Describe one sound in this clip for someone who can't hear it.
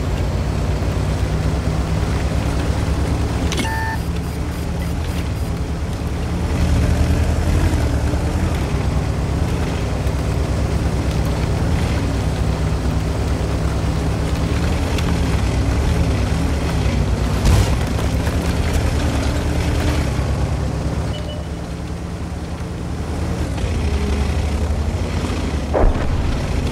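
A heavy tank's diesel engine rumbles as it drives.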